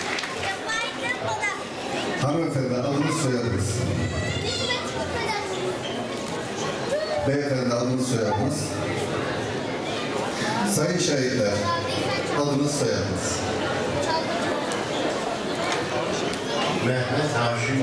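An elderly man speaks calmly into a microphone.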